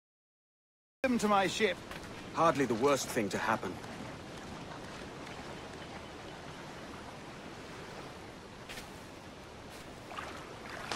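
Gentle waves lap softly against a shore.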